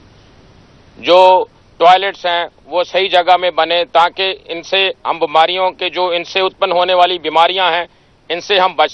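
A middle-aged man speaks steadily into microphones.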